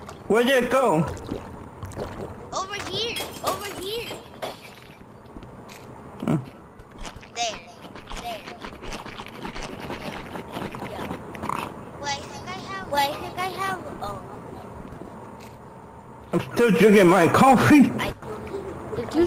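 Several young voices talk and laugh with animation over an online voice chat.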